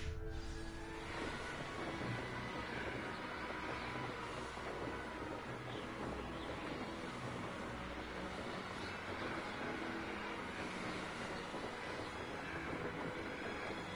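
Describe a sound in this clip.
Wind rushes steadily past during a fast flight.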